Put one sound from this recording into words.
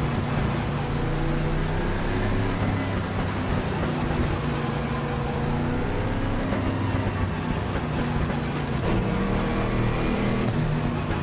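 Other race car engines drone nearby.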